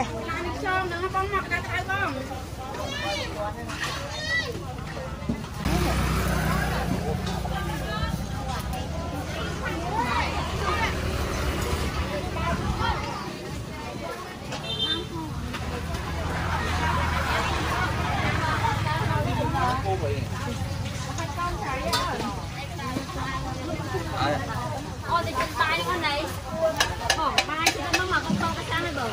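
Voices of a busy outdoor market crowd chatter close by.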